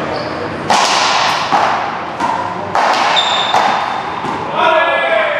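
A hard rubber ball smacks against walls and racquets with sharp echoes in a large echoing hall.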